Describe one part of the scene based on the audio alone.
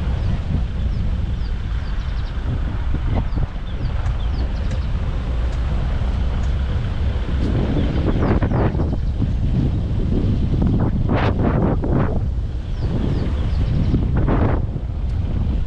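Tyres crunch and bump along a dirt track.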